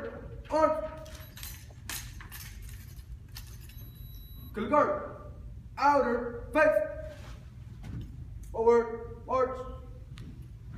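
A young man shouts drill commands.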